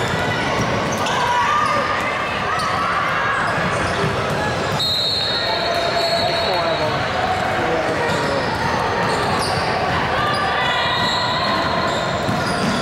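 Voices of players and spectators echo in a large gym.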